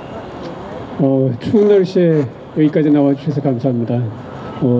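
An elderly man speaks calmly into a microphone through a loudspeaker outdoors.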